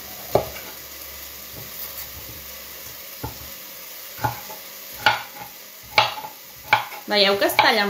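A knife chops through squash on a cutting board with sharp knocks.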